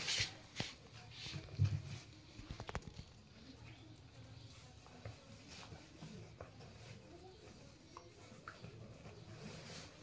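A dog chews and gnaws on a cloth.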